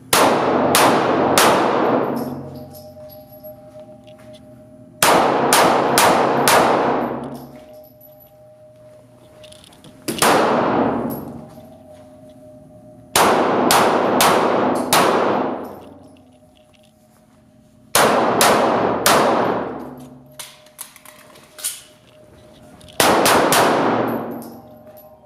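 A pistol fires in quick bursts of shots that boom and echo through a large indoor hall.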